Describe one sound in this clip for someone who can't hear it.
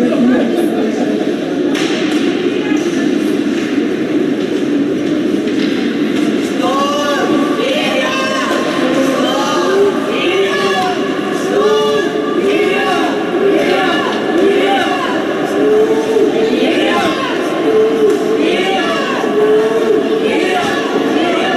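Spectators chatter and call out in an echoing arena.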